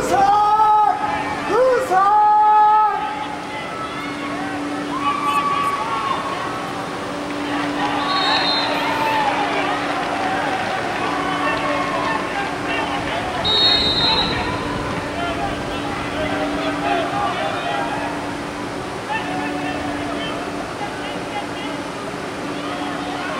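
Young men shout to each other across a large open stadium.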